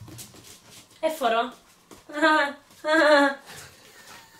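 A puppy whines and yelps in high-pitched bursts.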